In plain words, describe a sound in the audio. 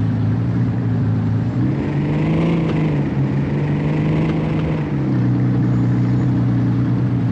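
A sports car engine roars, revving up as the car speeds up and dropping as it slows down.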